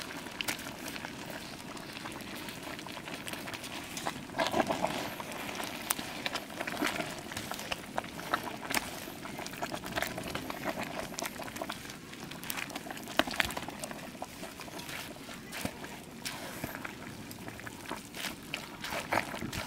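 A wooden paddle stirs and scrapes through thick food in a large metal pot.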